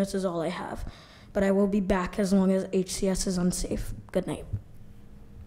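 A young girl speaks calmly into a microphone.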